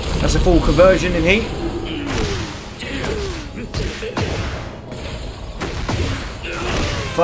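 A man talks with excitement into a close microphone.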